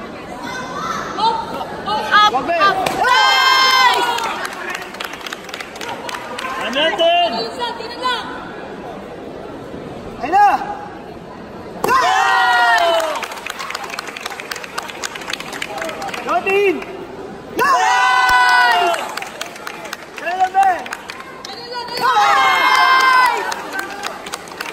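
Young men shout loud, drawn-out battle cries in an echoing hall.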